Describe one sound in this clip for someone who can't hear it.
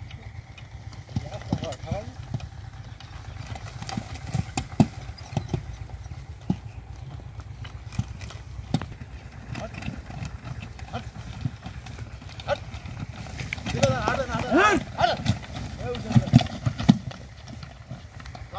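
Horse hooves clop on a dirt track.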